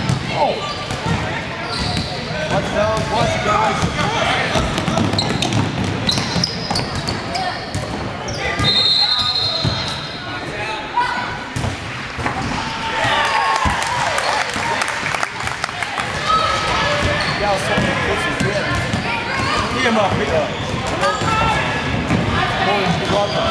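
A basketball thumps as it is dribbled on a wooden floor.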